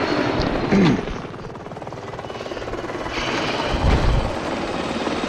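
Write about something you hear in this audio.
A helicopter's rotor blades thump rapidly overhead.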